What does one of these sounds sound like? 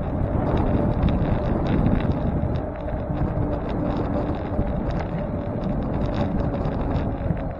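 Tyres hum and rattle over the road surface.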